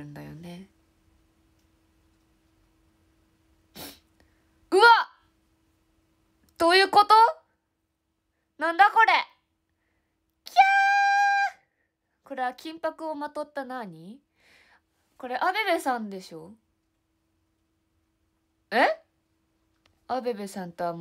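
A young woman talks close by in short bursts, animated and chatty.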